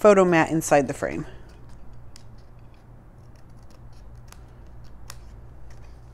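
Scissors snip through thin card.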